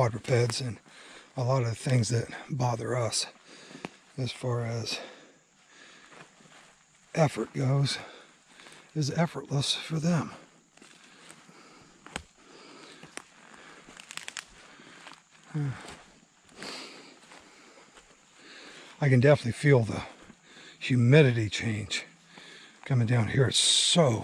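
Footsteps crunch on dry leaves along a trail.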